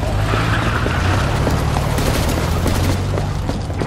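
Heavy boots run across a hard, gritty floor.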